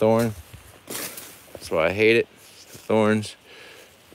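Dry plant stalks rustle as a hand pulls them from the ground.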